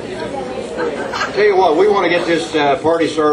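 An elderly man speaks into a microphone, heard through a loudspeaker.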